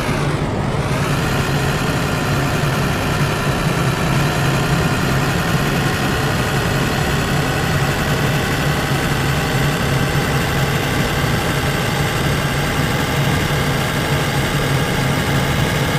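A truck engine drones loudly and steadily, rising in pitch at first.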